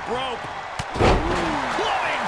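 A body slams hard onto a wrestling ring mat with a heavy thud.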